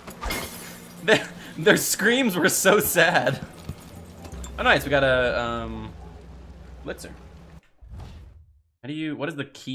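A young man talks and laughs with animation close to a microphone.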